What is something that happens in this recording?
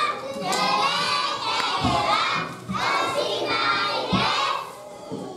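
A group of young children sings together loudly in a hall.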